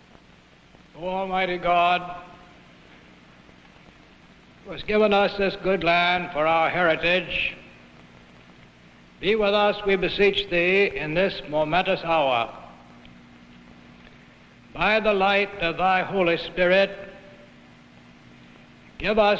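An elderly woman speaks slowly and deliberately, close by, with pauses between phrases.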